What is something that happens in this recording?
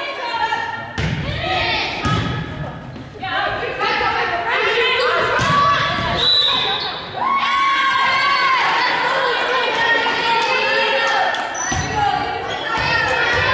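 A volleyball is struck with sharp thumps.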